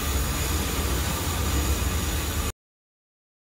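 Steam hisses steadily from pots on a stove.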